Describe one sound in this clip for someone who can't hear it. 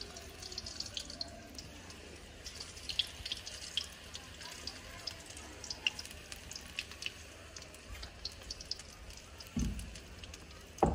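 Hot oil sizzles and pops in a metal pan.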